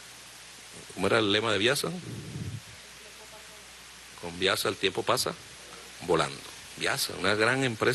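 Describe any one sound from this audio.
A middle-aged man speaks firmly into a microphone, with pauses between phrases.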